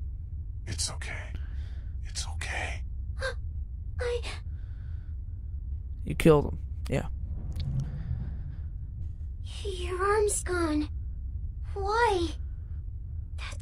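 A young girl speaks softly and tearfully, close by.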